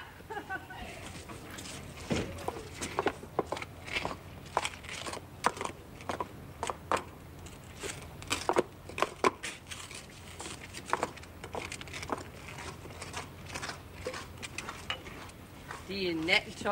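Footsteps clatter on cobblestones.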